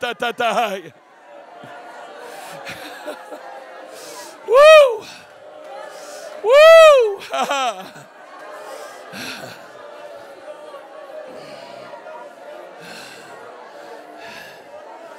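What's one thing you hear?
A crowd of people murmur and pray aloud.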